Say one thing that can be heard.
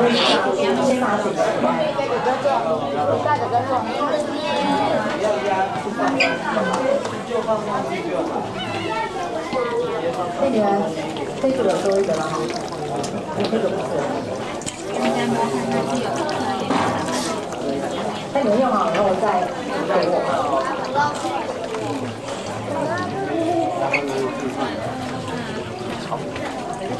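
Several people talk nearby.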